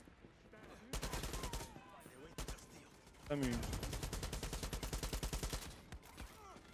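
Automatic gunfire rattles rapidly in bursts.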